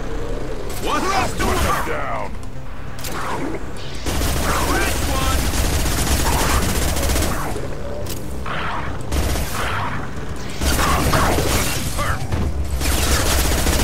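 Creatures growl and roar.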